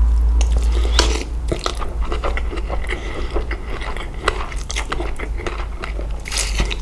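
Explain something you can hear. Noodles are slurped loudly close up.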